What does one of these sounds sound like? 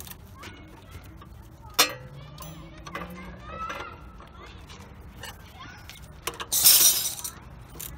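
A ratchet wrench clicks.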